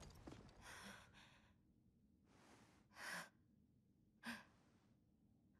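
A young woman breathes shakily and gasps close by.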